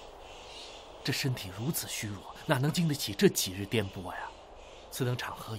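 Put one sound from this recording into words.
A young man speaks with concern, close by.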